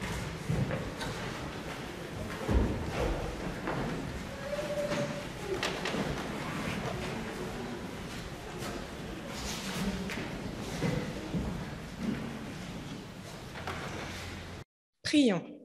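A woman reads aloud through a microphone in a large echoing hall.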